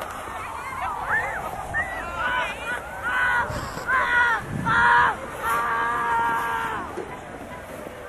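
Children shout and call out in the distance.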